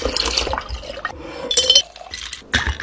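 Ice cubes clink into a glass jar.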